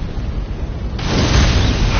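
A burst of fire flares with a loud whoosh.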